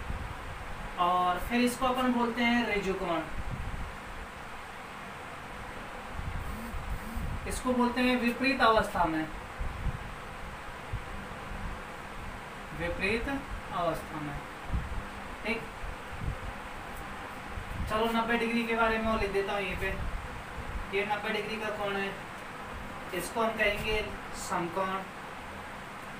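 A man speaks in bursts, explaining calmly and nearby.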